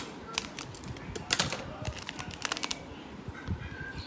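Plastic bag crinkles in a boy's hands.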